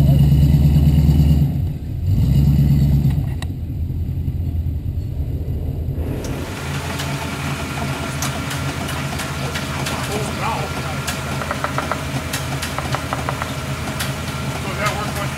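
A truck engine revs loudly, then idles.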